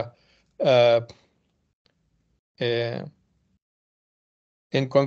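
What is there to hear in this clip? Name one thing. An elderly man speaks calmly over an online call, in short phrases with pauses.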